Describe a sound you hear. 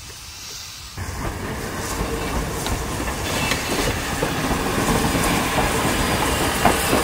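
Heavy train wheels clank and rumble along rails close by.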